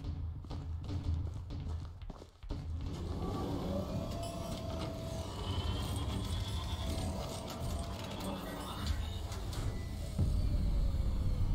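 A large robot walker stomps with heavy mechanical thuds.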